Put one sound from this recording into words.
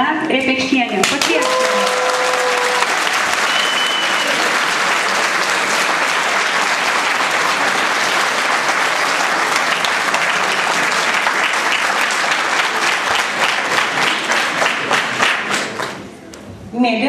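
An audience claps and applauds loudly in an echoing hall.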